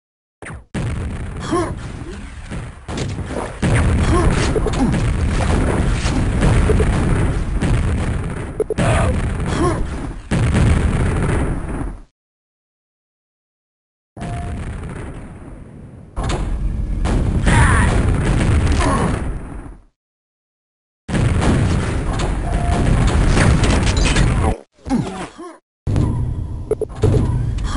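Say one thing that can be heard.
Gunfire from a game weapon blasts repeatedly.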